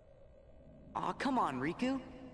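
A second young man answers pleadingly, close by.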